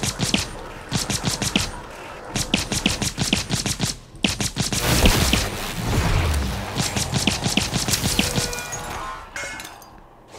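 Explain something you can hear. A gun fires rapid bursts of shots close by.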